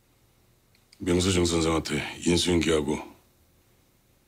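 A middle-aged man speaks calmly and firmly nearby.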